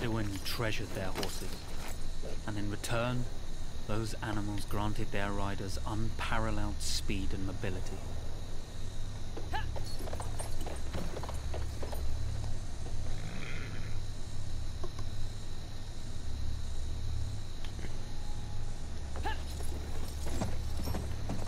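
A horse's hooves thud on rocky ground.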